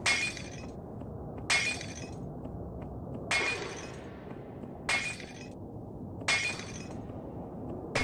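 Small explosions burst in quick succession.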